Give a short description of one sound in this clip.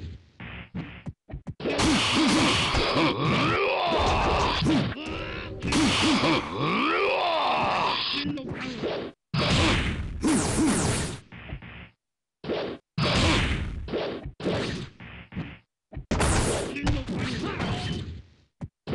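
Punches and kicks land with sharp thuds and smacks.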